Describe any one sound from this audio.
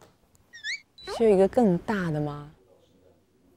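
A woman speaks cheerfully through a microphone.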